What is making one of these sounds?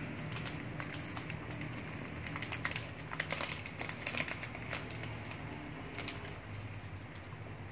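A plastic candy wrapper crinkles.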